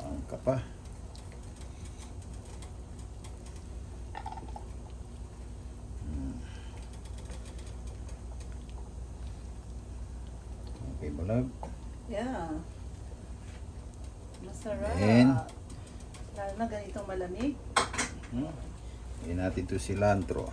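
Soup simmers and bubbles in a pan.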